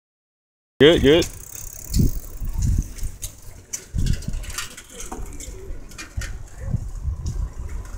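Bicycles roll past on a paved street.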